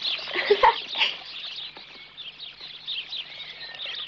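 Small birds chirp and twitter.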